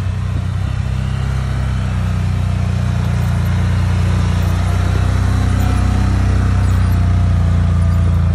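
A plow blade pushes heavy wet snow.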